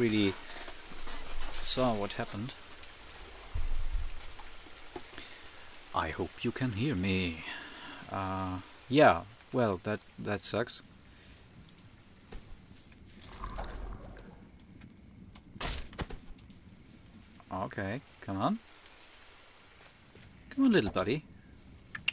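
A man talks with animation, close to a microphone, in bursts.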